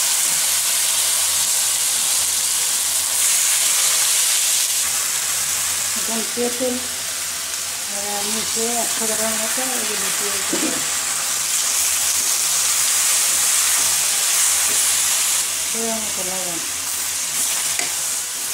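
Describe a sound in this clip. Food sizzles and crackles loudly in hot oil.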